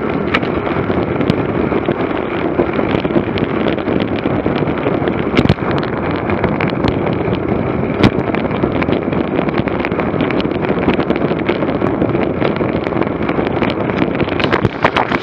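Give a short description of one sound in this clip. Wind buffets loudly against a microphone.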